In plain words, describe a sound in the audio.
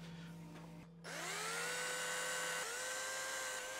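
A small electric drill whirs up to speed.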